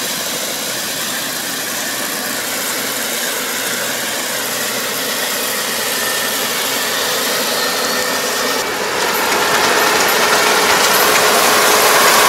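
A combine harvester engine drones, growing louder as the machine approaches.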